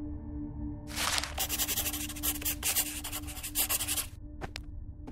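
A pen scratches across paper.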